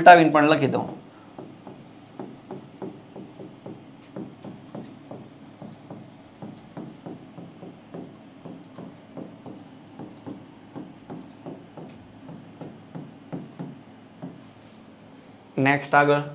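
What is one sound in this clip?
A marker taps and scratches on a board.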